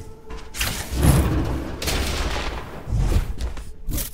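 Game effects whoosh and thump heavily as a figure leaps through the air.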